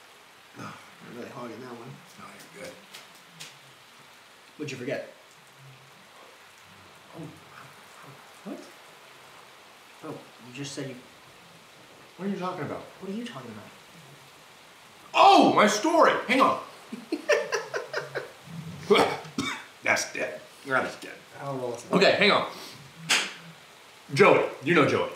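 A young man talks quietly nearby, then with growing animation.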